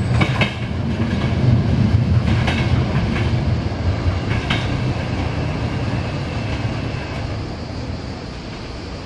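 A train rumbles away along the tracks and slowly fades.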